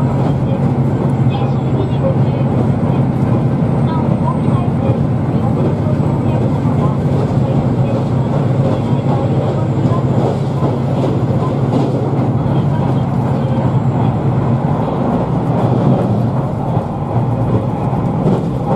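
A train rumbles along the tracks with a steady low drone.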